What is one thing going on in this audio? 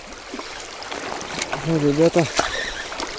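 A fishing reel clicks and whirs as a line is wound in.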